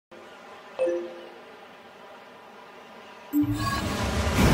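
A soft electronic chime sounds.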